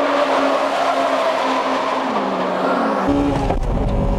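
A car engine roars as a car speeds past.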